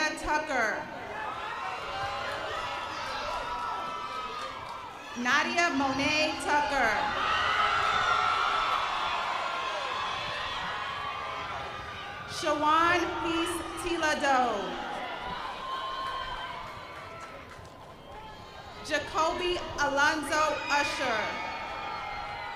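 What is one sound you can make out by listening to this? A crowd cheers and whoops loudly outdoors in bursts.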